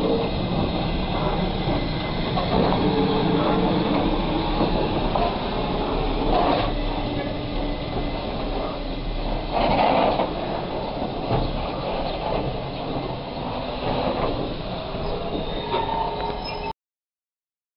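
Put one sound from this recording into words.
A steam locomotive hisses and chugs slowly away.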